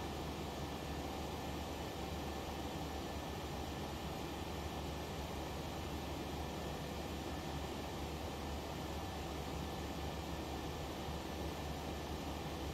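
A jet's engines hum in a steady, low roar.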